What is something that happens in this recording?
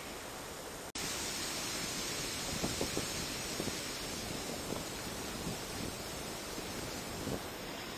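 Water rushes and churns nearby.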